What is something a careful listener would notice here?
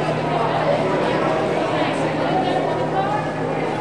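A swimmer splashes in water.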